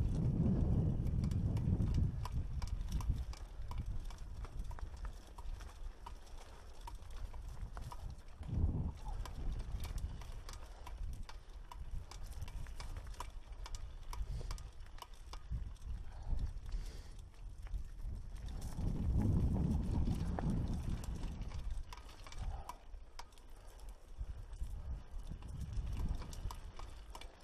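Wind gusts roughly against a microphone.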